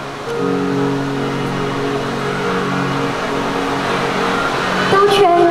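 Backing music plays from a loudspeaker.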